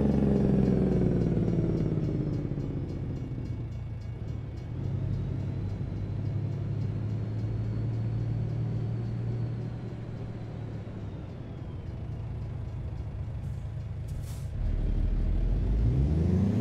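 A truck engine rumbles steadily, its pitch falling and rising as it shifts gears.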